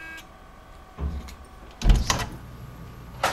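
A door latch clicks and the door thuds shut.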